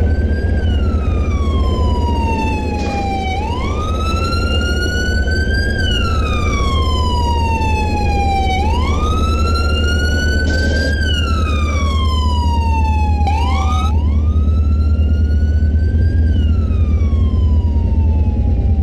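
A siren wails, slowly rising and falling over and over.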